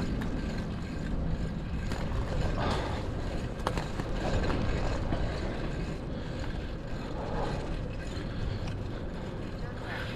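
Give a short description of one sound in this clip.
Wind rumbles steadily against a moving rider outdoors.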